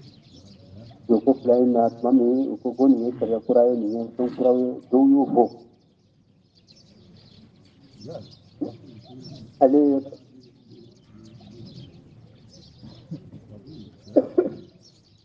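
An elderly man speaks in a chanting voice, with pauses.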